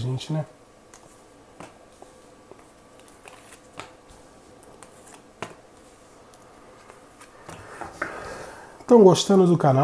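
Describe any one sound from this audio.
Playing cards are softly laid down on a table.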